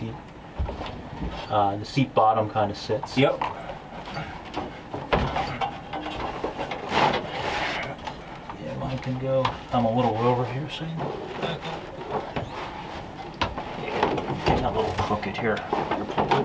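Rubber matting scrapes and thumps against a metal floor.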